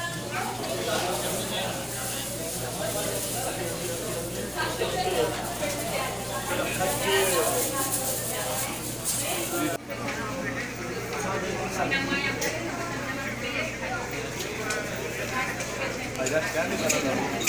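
Serving spoons scrape and clink against metal trays.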